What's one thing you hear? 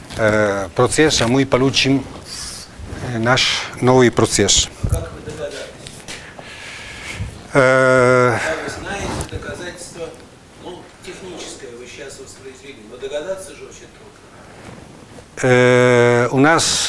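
An elderly man lectures in a room with some echo, speaking in bursts with pauses.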